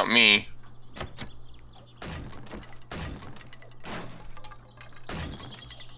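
A hammer bangs against a wooden door.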